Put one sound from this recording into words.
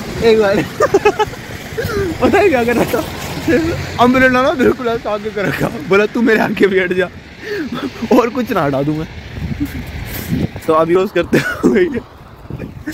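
A young man talks and laughs loudly, close by.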